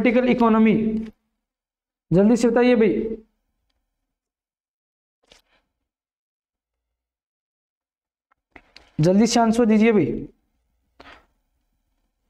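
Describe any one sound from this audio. A man speaks calmly and clearly into a microphone, in short phrases with pauses.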